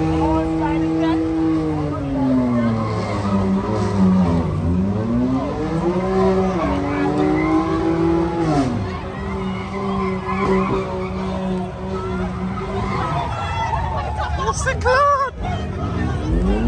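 A crowd of people shouts and cheers nearby.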